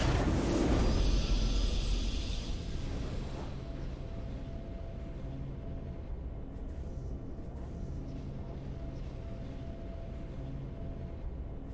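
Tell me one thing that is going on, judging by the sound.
A victory fanfare plays with a deep, swelling chord.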